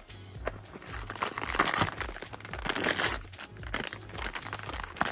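A foil bag crinkles and rustles loudly in hands.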